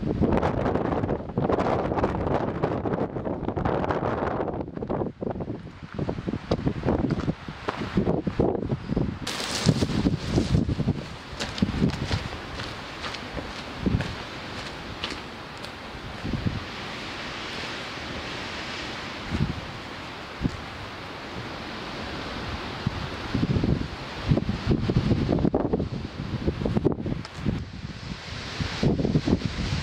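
Footsteps crunch on rocky gravel close by.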